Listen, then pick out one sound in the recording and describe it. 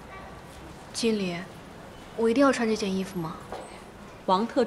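A young woman speaks quietly, nearby.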